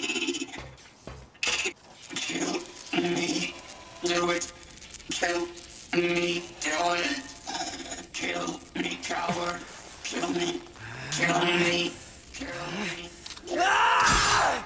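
A man's harsh, mechanical voice shouts over and over.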